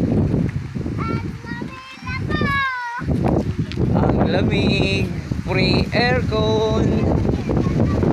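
A young girl calls out in a high voice nearby.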